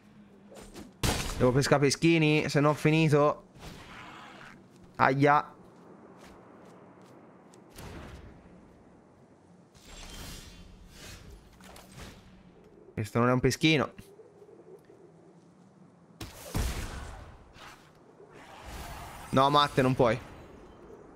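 A man speaks close to a microphone in short bursts, with animation.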